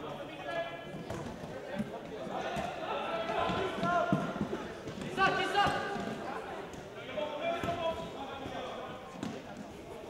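A ball thuds as it is kicked on a hard floor.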